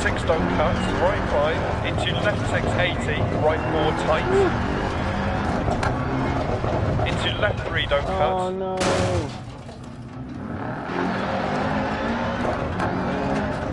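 A rally car engine roars and revs.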